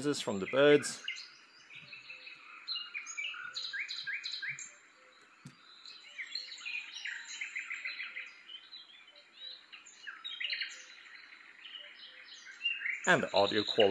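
A small speaker plays soft, high chirping sounds.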